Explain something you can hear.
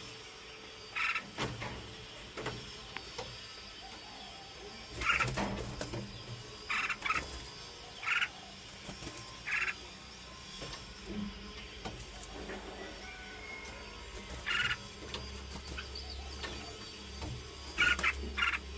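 Nestling birds cheep in short, high bursts.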